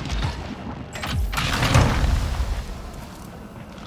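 A weapon fires a sustained roaring beam.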